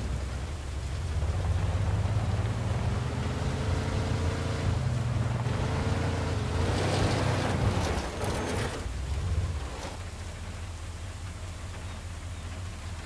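A car engine rumbles steadily as the car drives, then drops to a quiet idle.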